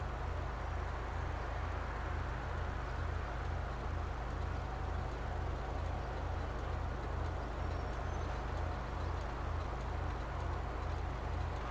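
A car engine idles with a low, steady rumble.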